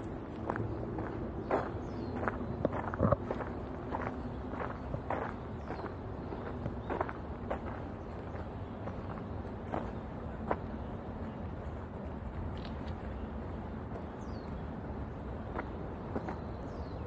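Hands fumble with a pole, making soft knocks and taps.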